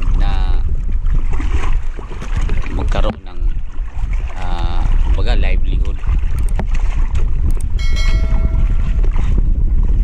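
Water laps and splashes against a small boat.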